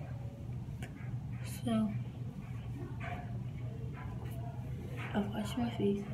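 A tissue rustles against skin.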